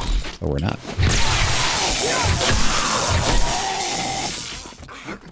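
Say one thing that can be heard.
An electric weapon crackles and zaps loudly.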